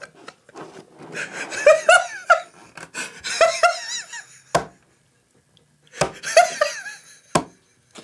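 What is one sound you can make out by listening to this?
Another young man laughs and talks with animation close by.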